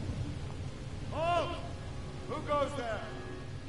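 A man calls out from a distance.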